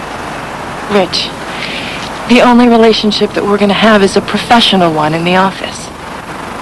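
A young woman speaks quietly and earnestly nearby.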